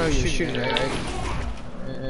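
A pickaxe strikes a wooden wall in a video game.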